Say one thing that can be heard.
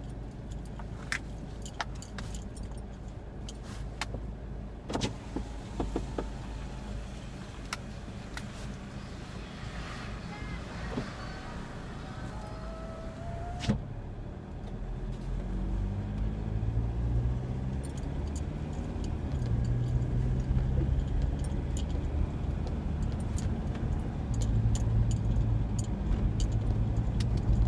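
A car engine hums steadily from inside the cabin and grows louder as the car speeds up.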